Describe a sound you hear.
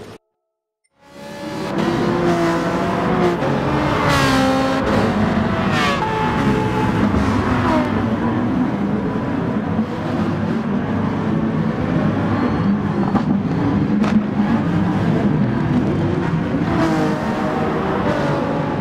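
Racing car engines roar and whine as they speed past, shifting gears.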